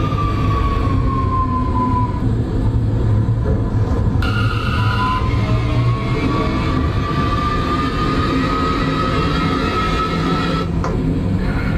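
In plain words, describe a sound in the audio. A train's motor whines, its pitch sliding up and down.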